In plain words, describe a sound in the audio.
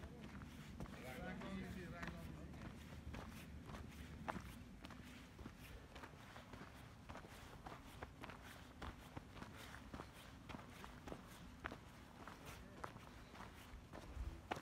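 Footsteps crunch on dry gravel and dirt.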